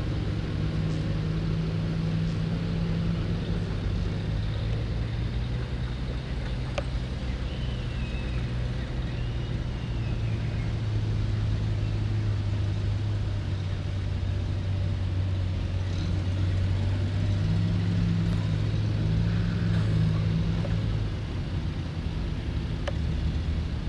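Armoured vehicle engines rumble and idle nearby outdoors.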